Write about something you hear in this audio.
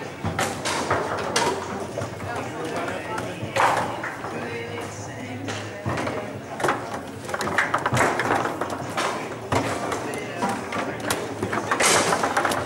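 A foosball ball clacks sharply against plastic players and the table walls.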